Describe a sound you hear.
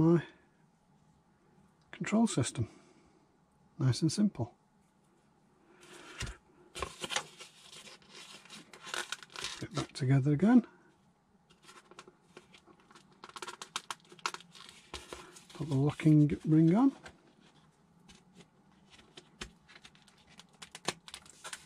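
Plastic toy parts click and rustle as hands fit them together.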